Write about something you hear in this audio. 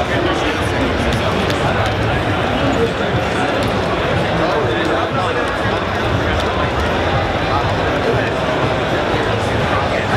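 Loud game battle sounds with heavy thuds and slashes play through loudspeakers.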